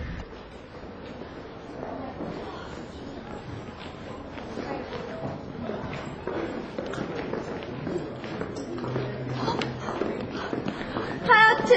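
Many footsteps shuffle along pavement.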